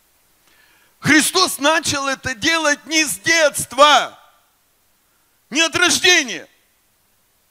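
A man speaks with animation through a microphone and loudspeakers in a large room.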